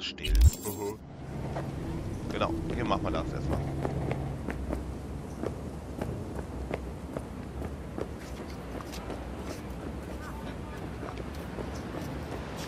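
Footsteps tread steadily on hard pavement.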